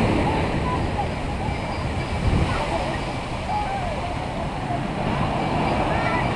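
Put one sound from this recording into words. Waves crash and wash up onto a beach.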